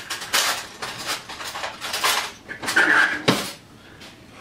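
Metal utensils clatter in a drawer.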